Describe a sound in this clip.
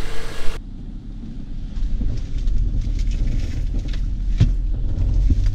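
Tyres rumble and bump over rough ground.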